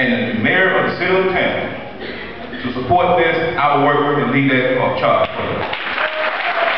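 A man speaks through a microphone over loudspeakers in a large echoing hall.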